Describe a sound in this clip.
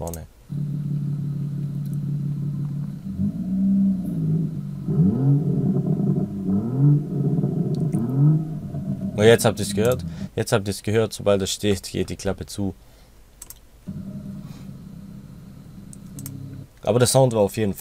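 A car exhaust idles with a deep rumble and revs up in sharp bursts.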